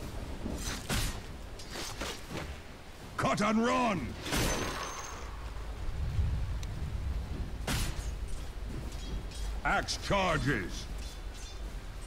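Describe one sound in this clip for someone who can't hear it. Magic spells and weapon strikes clash in a game battle, with sharp bursts.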